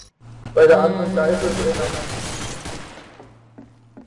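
A rifle fires a loud shot that echoes and fades away.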